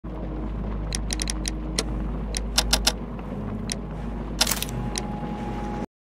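Short menu clicks sound several times.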